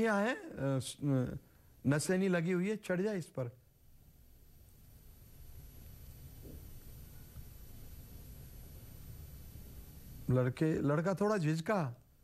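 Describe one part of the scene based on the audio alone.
An elderly man speaks calmly and clearly into a close microphone.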